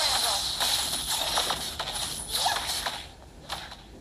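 Video game battle effects clash and crackle loudly.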